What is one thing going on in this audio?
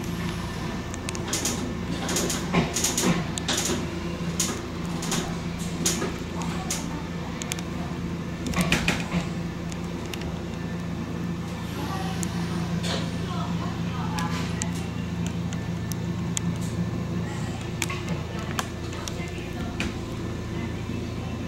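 A train's motor hums steadily from inside the cab.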